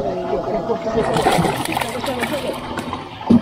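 A fish splashes in the water beside a boat.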